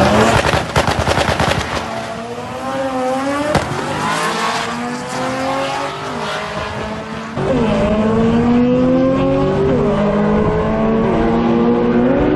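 Race cars accelerate away with engines rising in pitch as they fade into the distance.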